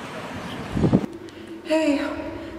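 A young person speaks close to a microphone.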